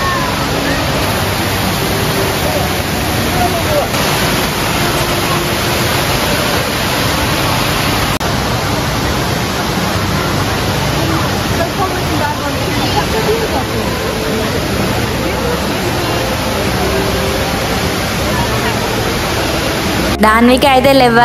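Water splashes and rushes steadily down cascading falls.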